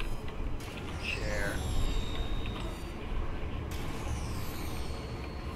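A sci-fi gun fires with a sweeping electronic zap.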